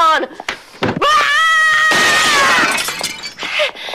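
A woman screams loudly.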